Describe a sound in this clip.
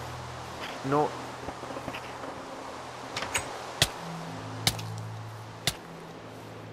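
Glass shatters with sharp cracks, several times.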